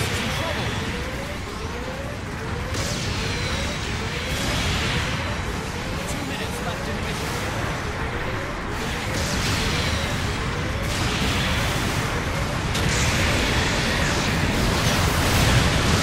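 Heavy robot engines roar steadily in a video game.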